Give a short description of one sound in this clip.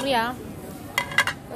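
A ceramic plate clinks against metal.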